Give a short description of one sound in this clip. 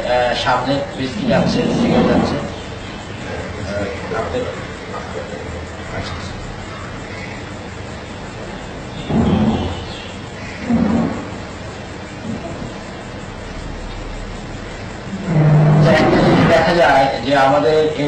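A middle-aged man speaks calmly, heard through an old, hissy recording.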